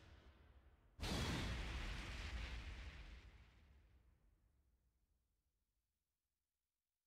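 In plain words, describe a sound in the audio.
A deep whooshing boom swells up and slowly fades away.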